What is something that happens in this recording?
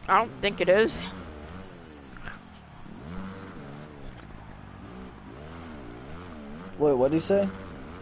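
A dirt bike engine revs, rising and falling in pitch.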